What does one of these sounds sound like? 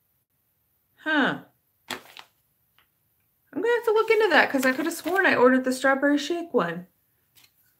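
A woman speaks calmly and close up, with pauses.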